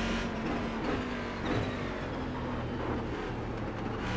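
A racing car engine revs up and down as gears change.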